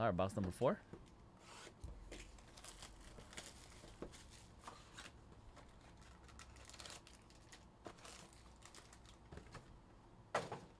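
Cardboard boxes rustle and scrape as hands handle and open them.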